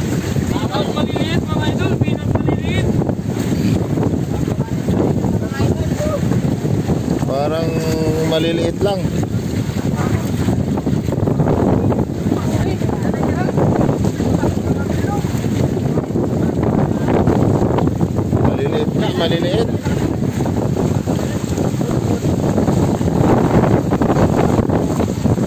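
Water splashes and churns as fish thrash in a net.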